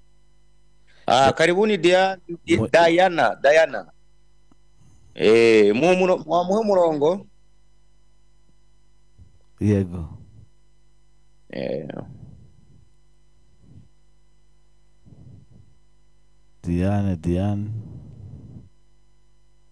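A man speaks calmly and clearly into a microphone, in short bursts with pauses.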